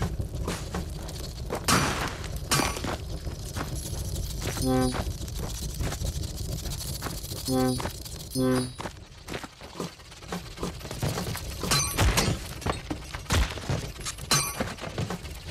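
Soft thuds and clicks of game effects sound throughout.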